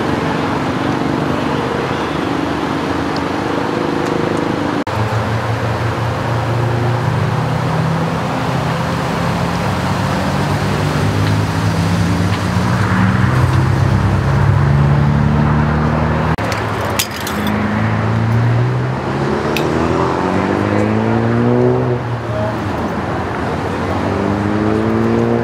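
An ambulance engine idles with a low, steady rumble.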